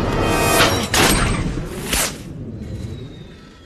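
Metal wheels grind and scrape along a cable.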